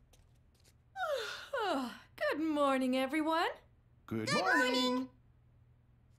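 A woman yawns loudly and long.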